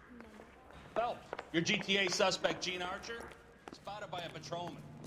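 A middle-aged man calls out loudly.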